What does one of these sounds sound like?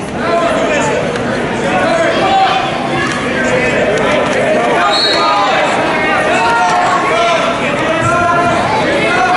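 A crowd of men and women shouts and cheers loudly in a large echoing hall.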